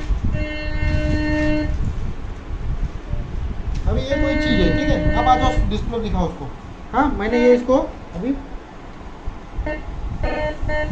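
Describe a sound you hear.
A metal detector beeps with a steady electronic tone in short bursts.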